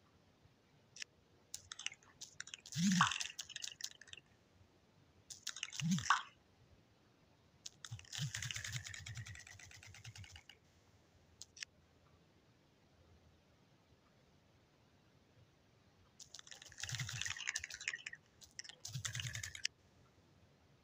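Short electronic pops and chimes play in quick bursts.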